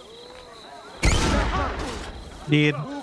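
A bomb bursts with a muffled blast.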